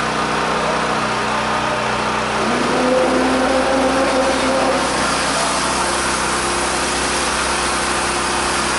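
A heavy engine rumbles steadily nearby.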